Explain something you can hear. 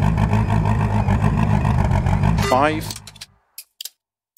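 A rally car engine idles with a low rumble, then cuts off.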